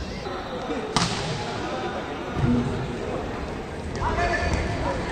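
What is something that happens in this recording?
A volleyball smacks hard when it is spiked.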